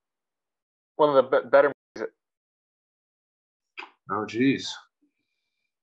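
A third young man answers briefly over an online call.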